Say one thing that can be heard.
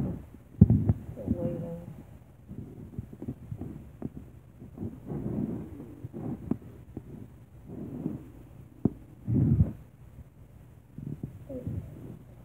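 A hand bumps and rubs against the phone, making knocks close to the microphone.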